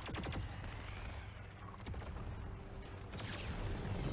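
An energy beam fires with a sharp zap.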